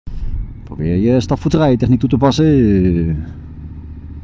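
A motorcycle engine revs loudly up and down close by.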